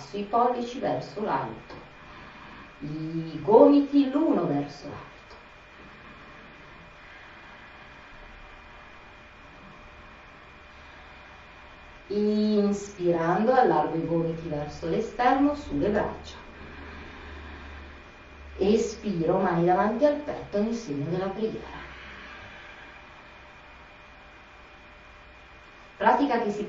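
A woman speaks calmly and slowly, in bursts with long pauses.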